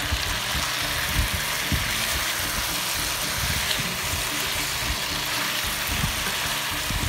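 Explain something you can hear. Food sizzles steadily in a pan.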